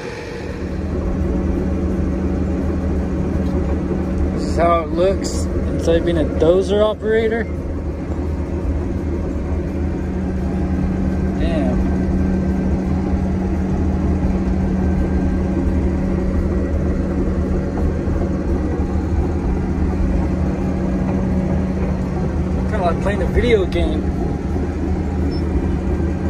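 A heavy bulldozer engine drones steadily from inside the cab.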